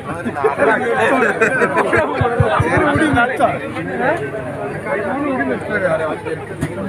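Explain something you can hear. A crowd of men talk and call out loudly at close range outdoors.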